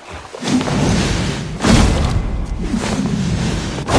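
A heavy weapon swings and strikes with a thud.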